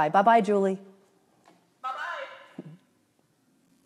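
A middle-aged woman speaks warmly and close to a microphone.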